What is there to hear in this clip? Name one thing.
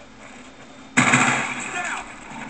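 Video game gunfire bursts out loudly through a television speaker.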